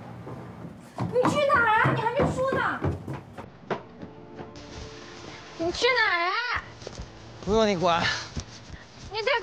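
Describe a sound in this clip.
A young woman calls out loudly from a distance.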